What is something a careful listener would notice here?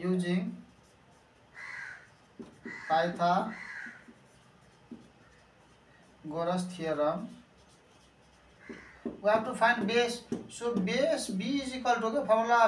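A marker scratches across a board.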